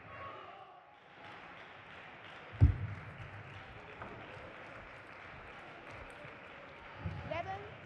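A table tennis ball clicks back and forth off bats and the table in a large hall.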